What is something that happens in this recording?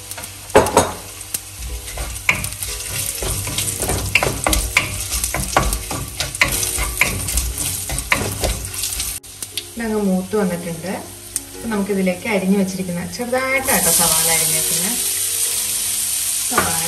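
Oil sizzles in a pan.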